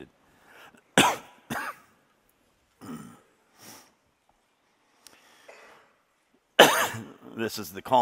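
A man coughs into a microphone.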